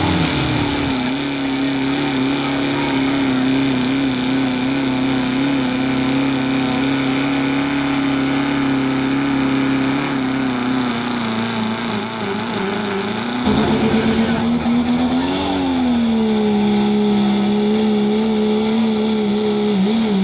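A diesel truck engine roars steadily, with brief revs rising and falling.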